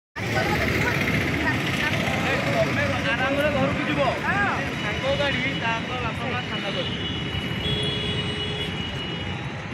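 Traffic rumbles along a busy road outdoors.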